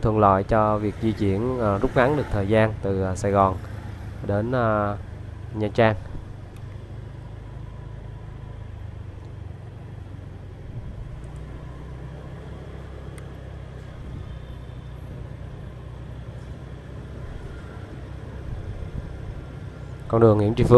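Motorbikes hum past on a quiet street.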